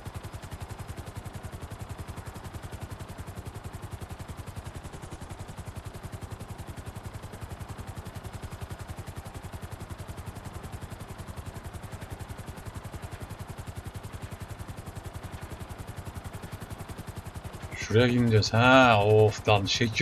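A helicopter's rotor thumps steadily.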